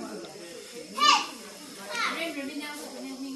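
A small child squeals in a high voice.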